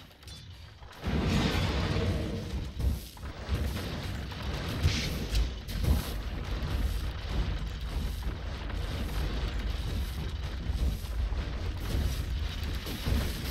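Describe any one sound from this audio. Video game battle sounds clash and crackle with spells and weapon hits.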